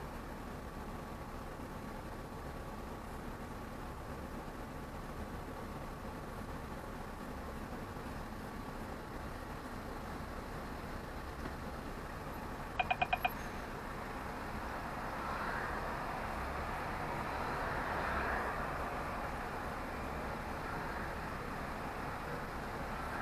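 A vehicle engine rumbles low and steady while idling in slow traffic.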